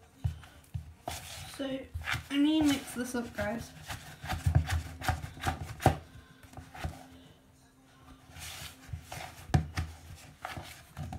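A hand squishes and kneads wet dough in a plastic bowl.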